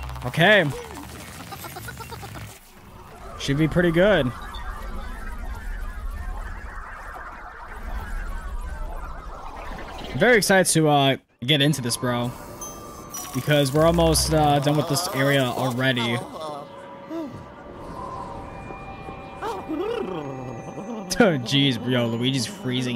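A young man talks and exclaims with animation close to a microphone.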